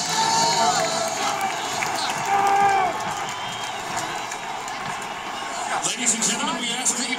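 A large stadium crowd roars and cheers loudly outdoors.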